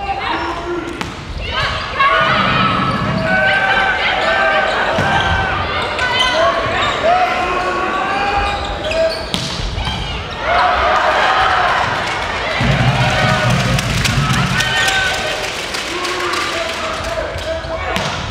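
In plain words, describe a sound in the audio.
A volleyball is struck with sharp smacks.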